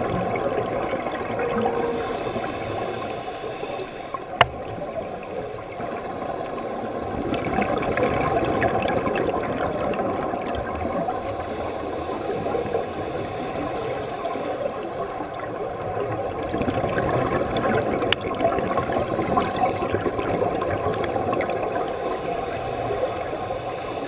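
Air bubbles from scuba divers gurgle and crackle steadily underwater.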